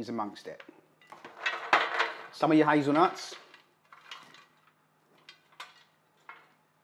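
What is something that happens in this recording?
Roasted vegetables slide and scrape out of a metal tray into a bowl.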